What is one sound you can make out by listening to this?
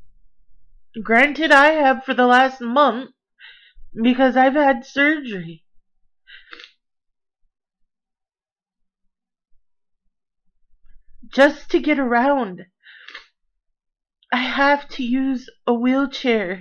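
A woman talks calmly and close to a microphone, with pauses.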